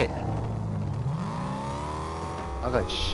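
A car engine revs up and hums steadily.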